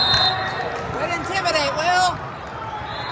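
Young women shout and cheer loudly.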